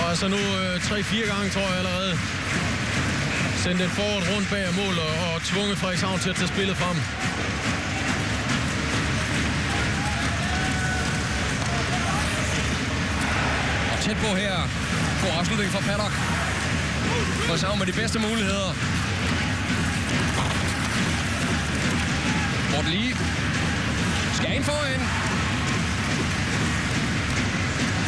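Skates scrape and hiss across the ice.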